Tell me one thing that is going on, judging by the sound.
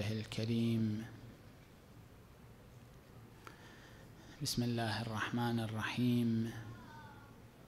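A man speaks slowly and calmly into a microphone, in a reverberant hall.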